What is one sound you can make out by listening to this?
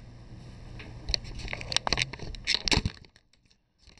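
A phone knocks and rustles as it is handled.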